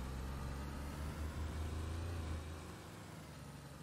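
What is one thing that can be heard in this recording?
Tyres rumble over a rough dirt track.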